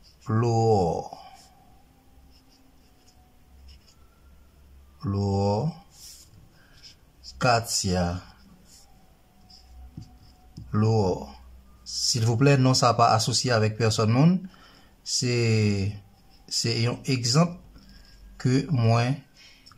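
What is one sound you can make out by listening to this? A marker pen squeaks softly across a leaf.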